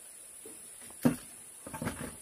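A wooden plank knocks against a bamboo floor.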